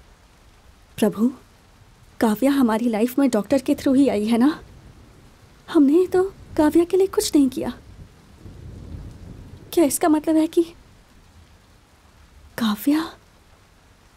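A young woman speaks angrily, close by.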